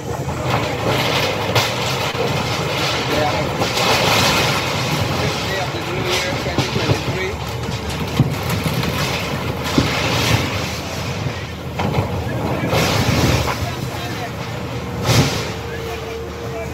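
Metal sheets and timber crash and clatter as a building is torn down.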